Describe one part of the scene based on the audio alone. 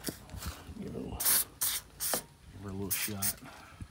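An aerosol can sprays in short hissing bursts.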